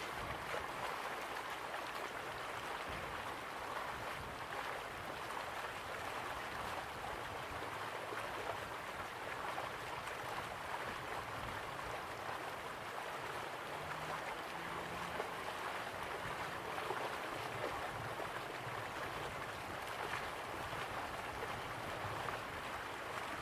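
A waterfall roars steadily.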